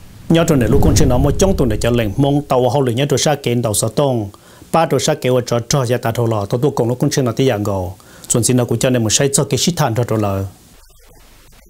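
A man speaks calmly and clearly into a microphone, like a news reader.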